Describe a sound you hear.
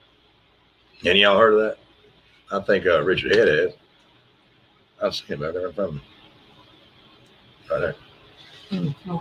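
A middle-aged man speaks calmly into a microphone, heard over an online call.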